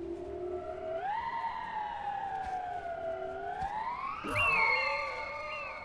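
An eagle screeches with a long wavering cry.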